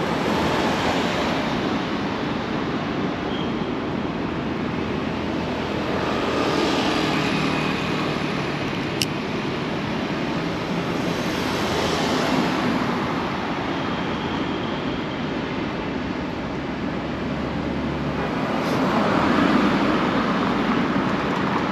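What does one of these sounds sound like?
Traffic hums steadily on a nearby city road.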